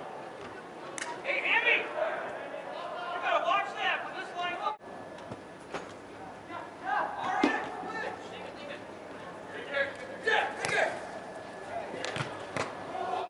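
A soccer ball is kicked with sharp thuds.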